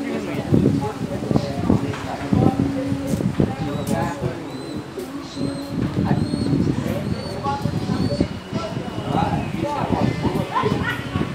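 Elderly men talk casually close by, outdoors.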